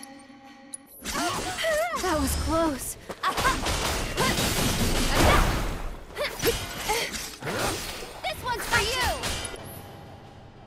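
Loud blasts and metallic strikes crash in quick bursts, then fade away.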